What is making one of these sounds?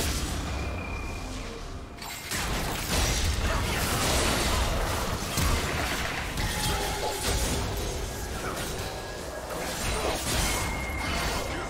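Spell blasts and impacts crash and whoosh in a game fight.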